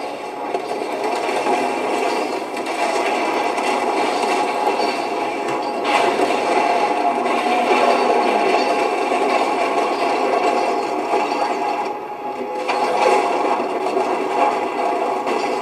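Game explosions boom through a small speaker.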